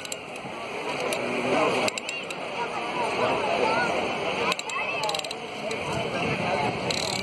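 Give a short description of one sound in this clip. Waves wash against rocks on the shore.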